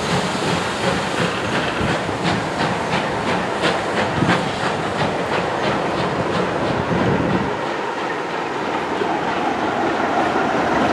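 Train carriages rumble across a bridge close by.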